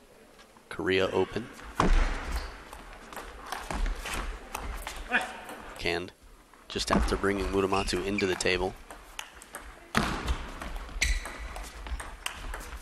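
A ping-pong ball clicks back and forth off paddles and a table.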